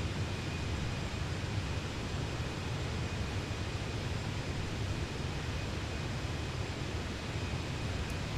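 Jet engines drone steadily in flight.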